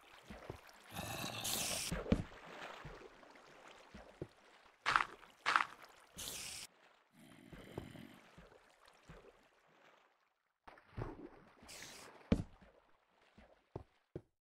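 A torch is set down with a soft click.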